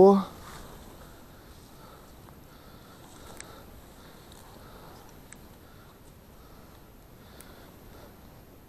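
Water laps softly.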